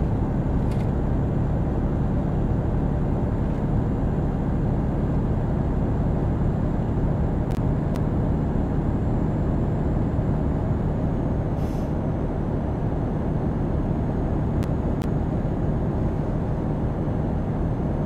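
Tyres roll on a smooth road with a steady rumble.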